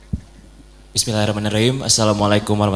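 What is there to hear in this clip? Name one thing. A man speaks close by.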